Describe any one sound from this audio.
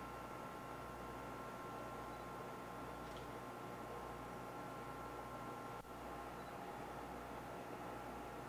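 A dough mixer hums and whirs steadily.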